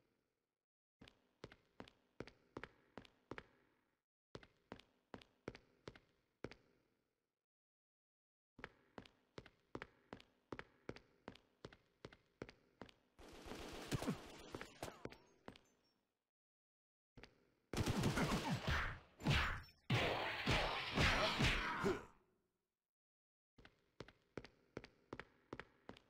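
Footsteps echo steadily on a hard floor.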